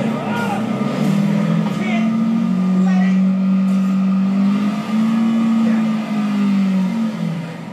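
A car's tyres screech as it is pulled back.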